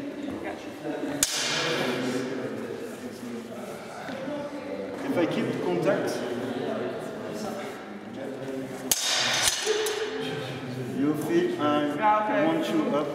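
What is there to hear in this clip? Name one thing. Voices of young people murmur and call out in the echoing hall.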